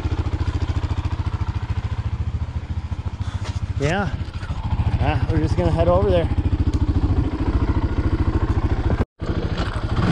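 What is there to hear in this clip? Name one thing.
A small engine idles with a steady low chugging.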